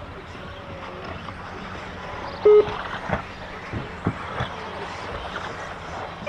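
Small electric toy cars whir around a track outdoors.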